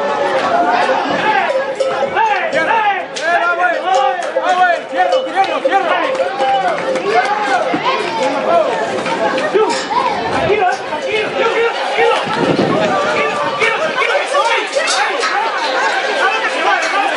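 A large crowd of men and women shouts and chatters outdoors.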